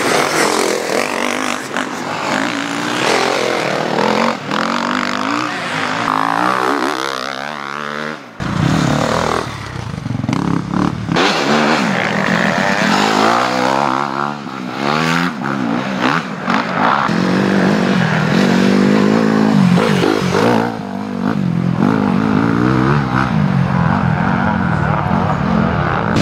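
Dirt bike engines rev and roar loudly, rising and falling in pitch.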